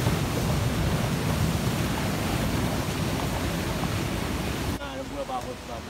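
Water rushes loudly over rocks.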